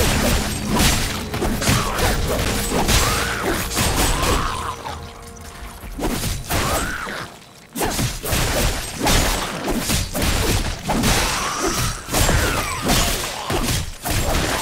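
Game weapons slash and clang in rapid combat.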